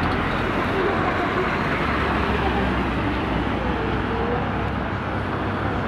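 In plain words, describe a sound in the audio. Traffic rumbles past on a nearby road.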